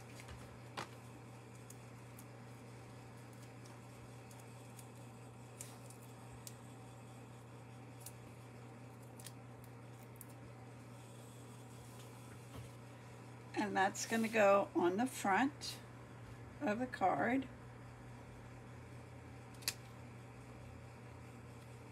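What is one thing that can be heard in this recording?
Hands press and slide stiff paper with soft rustles and taps.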